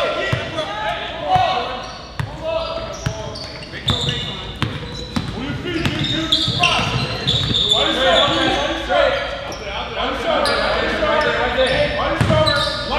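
Sneakers squeak sharply on the floor.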